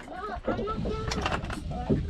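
Plastic fishing lures rattle in a tackle box.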